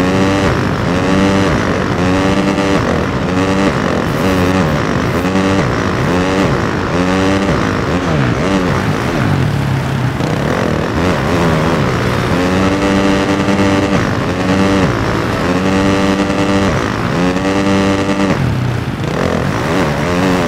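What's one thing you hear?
A motorcycle engine revs up and down again and again, loud and close.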